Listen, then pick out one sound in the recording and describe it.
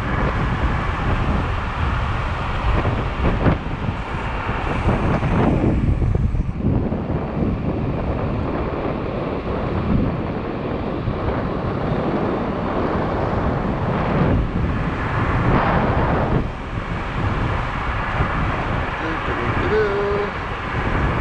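Wind rushes and buffets over a microphone on an electric scooter riding at speed.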